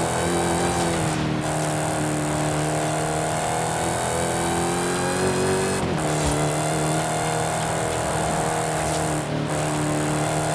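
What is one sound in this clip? A car engine roars at high revs, rising in pitch and dropping briefly at each gear change.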